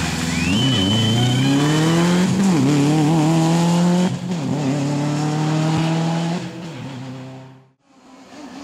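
A rally car engine revs hard and roars past.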